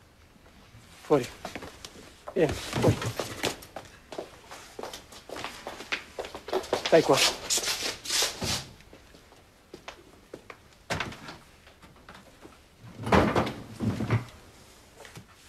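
A man speaks firmly.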